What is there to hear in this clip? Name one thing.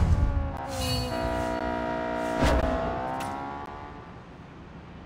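A bright, shimmering chime rings out and fades.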